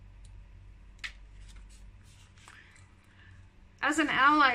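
Paper rustles and flaps as a booklet is handled and opened.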